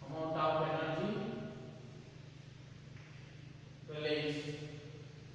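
A man speaks loudly and clearly, as if teaching a class.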